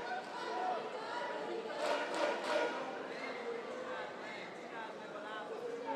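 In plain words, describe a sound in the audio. A woman referee speaks briefly in a large echoing hall.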